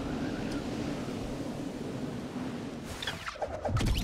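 Wind rushes steadily during a fall through the air.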